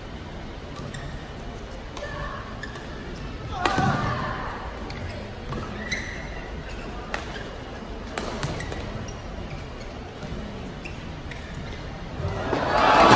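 Badminton rackets strike a shuttlecock back and forth in a rally.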